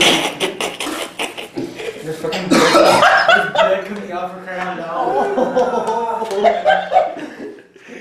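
Young men laugh loudly.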